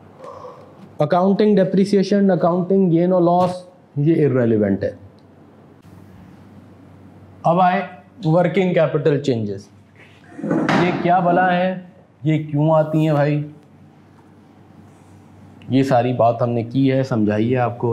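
A man speaks clearly and steadily close to a microphone, as if teaching.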